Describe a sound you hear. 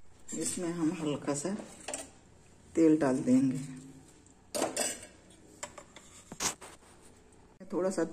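A metal spoon scrapes and stirs dry puffed rice in a metal pan.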